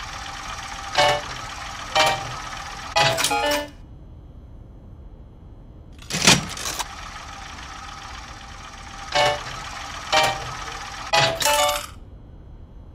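A slot machine chimes and dings as the reels stop.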